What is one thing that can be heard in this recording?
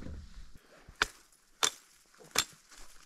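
A hatchet chops into spruce branches in sharp blows.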